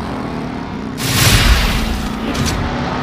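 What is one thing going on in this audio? A loud whooshing burst sounds as a car smashes through a box.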